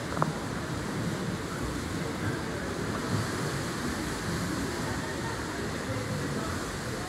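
Swimmers splash through the water in a large echoing hall.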